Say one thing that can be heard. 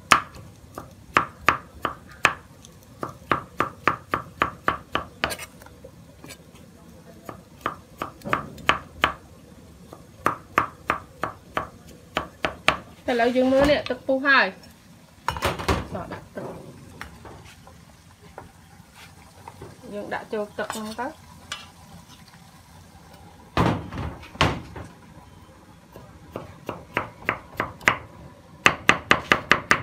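A knife chops rapidly on a wooden board.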